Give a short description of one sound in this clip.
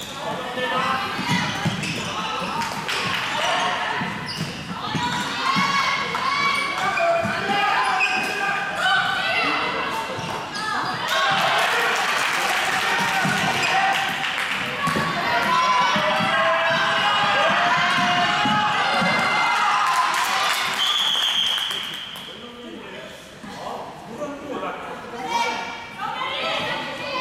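Young women shout to each other across a large echoing hall.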